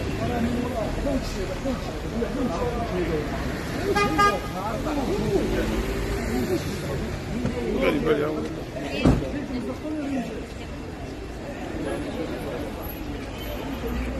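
A crowd of men talk and call out outdoors, close by.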